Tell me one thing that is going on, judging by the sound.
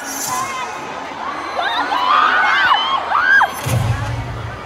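A crowd screams and cheers loudly in a large hall.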